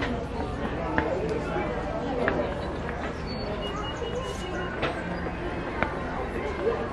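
Footsteps climb stone steps outdoors.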